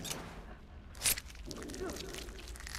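A knife cuts into flesh with a wet squelch.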